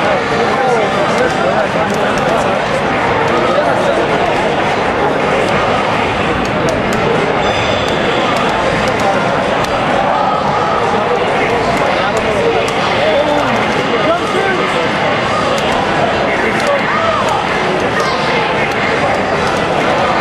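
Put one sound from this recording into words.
Punches, kicks and energy blasts from a fighting game thump and crackle through a television speaker.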